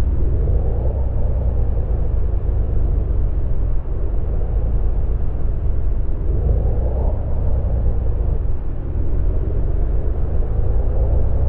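A bus engine hums steadily with a low rumble as the bus drives along a road.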